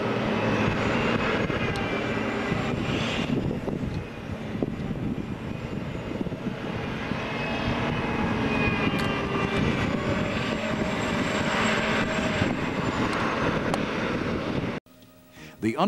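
A heavy tracked tractor's diesel engine rumbles loudly nearby.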